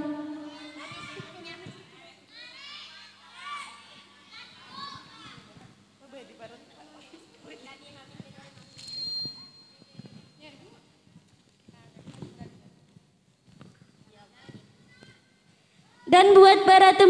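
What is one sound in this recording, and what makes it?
A girl speaks through a microphone over a loudspeaker.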